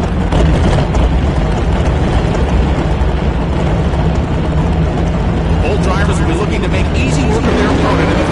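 A race car engine idles with a deep, rough rumble.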